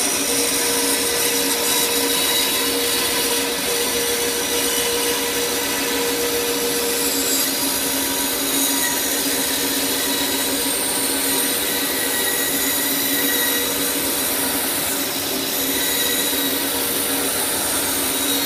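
A band saw blade cuts through wood with a rasping buzz.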